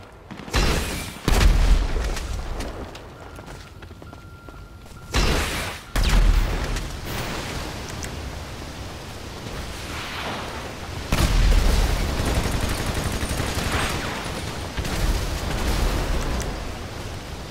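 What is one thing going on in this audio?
Explosions boom loudly with deep rumbles.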